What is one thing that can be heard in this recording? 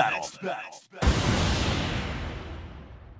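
A loud booming whoosh hits and slowly fades.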